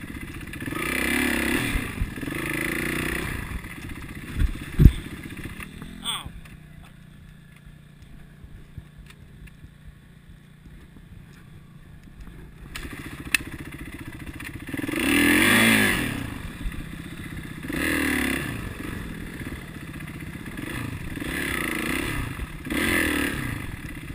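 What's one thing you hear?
A dirt bike engine revs up and down close by, idling low in between.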